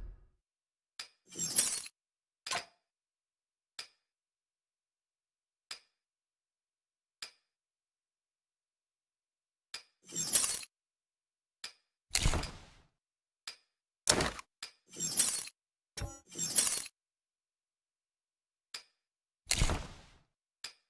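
Short interface clicks tick now and then.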